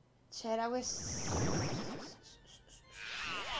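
A loud magical blast whooshes and roars.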